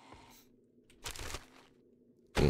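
A container lid rattles open.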